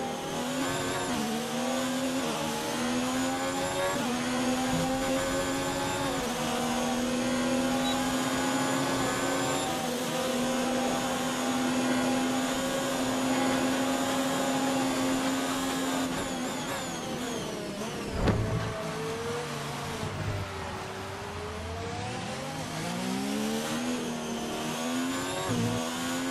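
A racing car engine roars loudly, rising in pitch through each gear and dropping as it shifts down.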